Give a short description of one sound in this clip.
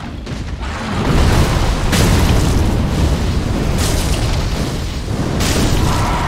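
Flames burst and roar loudly.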